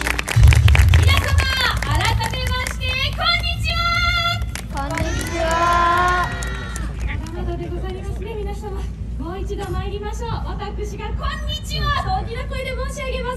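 A young woman speaks loudly outdoors.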